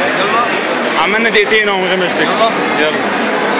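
A young man speaks loudly and laughs close by.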